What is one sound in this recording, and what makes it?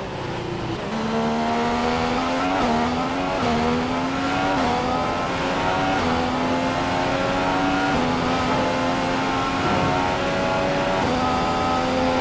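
A Formula One car's V6 turbo engine accelerates and shifts up through the gears.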